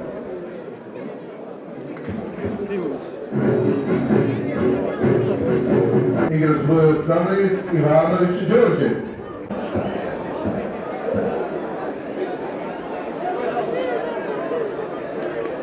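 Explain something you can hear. A crowd of people murmurs and talks in the background.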